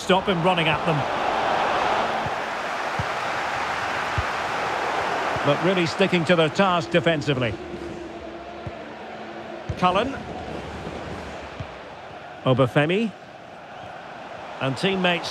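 A large crowd roars in a stadium, then quietens.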